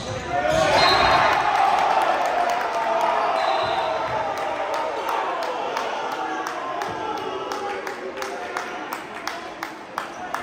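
A crowd cheers loudly in a large echoing gym and slowly dies down.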